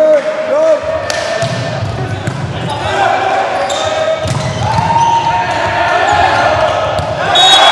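A volleyball is struck hard during play.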